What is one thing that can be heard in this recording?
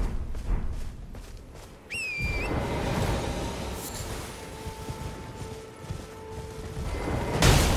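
A horse gallops, its hooves thudding on grass.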